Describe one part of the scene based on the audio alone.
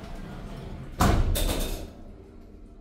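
Elevator doors slide shut with a thud.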